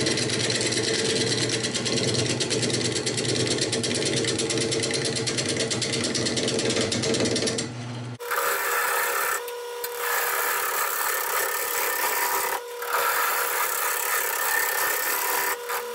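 A wood lathe hums as it spins.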